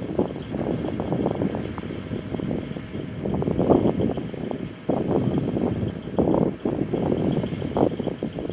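Wind gusts hard across open ground, rumbling against the microphone.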